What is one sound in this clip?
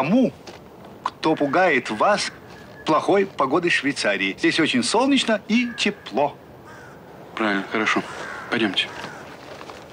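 An elderly man speaks quietly and close by.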